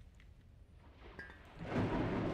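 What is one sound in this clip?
A soft interface click sounds as a menu opens.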